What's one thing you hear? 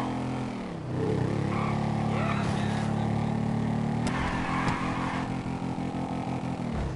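A small quad bike engine revs loudly, rising and falling as it speeds along.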